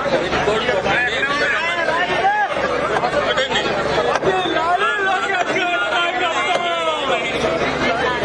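A man nearby shouts loudly with excitement.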